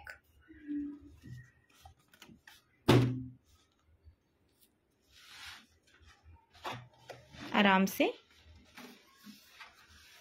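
Cardboard box flaps rustle and thump as they are opened.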